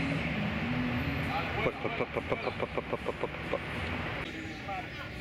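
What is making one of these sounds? Men talk casually a short way off outdoors.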